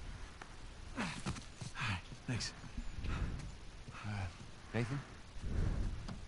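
A young man speaks calmly and briefly.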